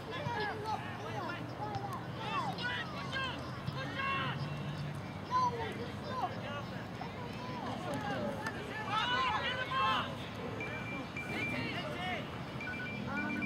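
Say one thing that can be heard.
Young men shout across an open field outdoors.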